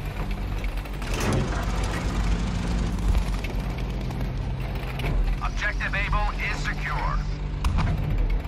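Tank tracks clank and grind over a dirt road.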